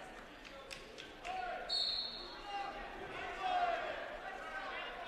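A crowd shouts and cheers in a large echoing gym.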